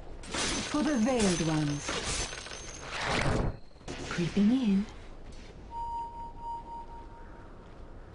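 Game sound effects of spells and blasts play.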